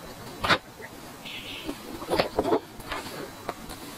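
A young woman sips a drink from a small cup.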